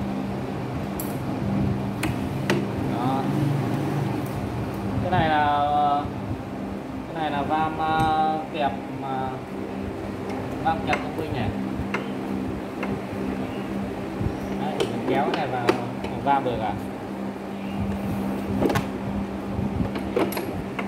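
Metal parts clank and click as a lever is worked.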